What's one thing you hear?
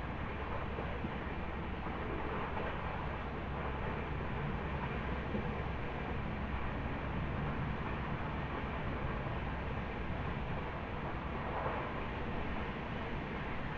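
Wind rushes past an open train window.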